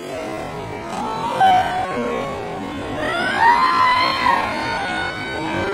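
A young woman shrieks in fright.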